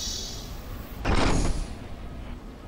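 An energy sword swings with a sharp electric whoosh.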